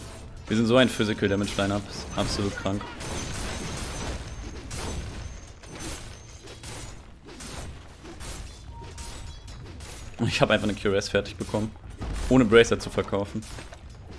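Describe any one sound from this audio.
Magic blasts and weapon strikes crackle and thud in a fight.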